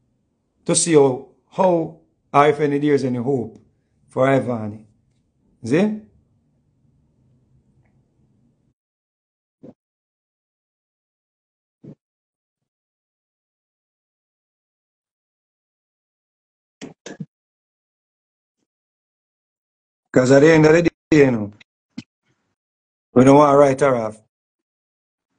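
A man speaks with animation close to a microphone, in short bursts with long pauses.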